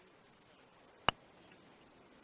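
A putter taps a golf ball with a soft click.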